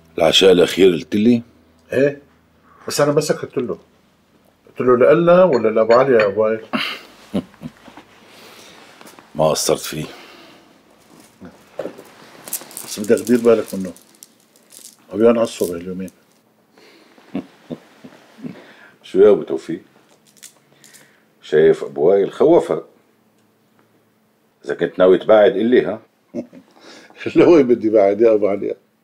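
An older man answers calmly, close by.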